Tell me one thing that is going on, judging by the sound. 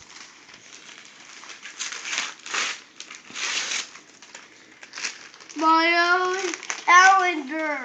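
Wrapping paper rustles and tears.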